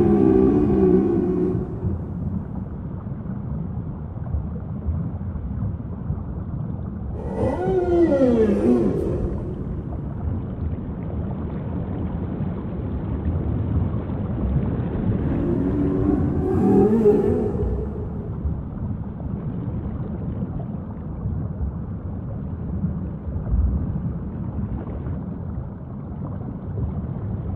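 Water streams and splashes off a whale's tail as the whale dives.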